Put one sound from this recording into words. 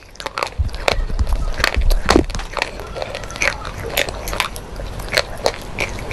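A woman chews crunchy food close to a microphone with loud crackling bites.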